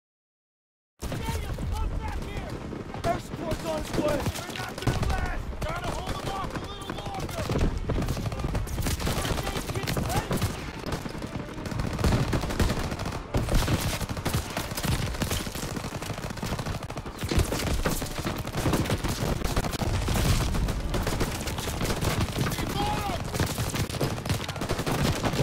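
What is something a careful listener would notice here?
Rifle shots crack again and again amid heavy gunfire.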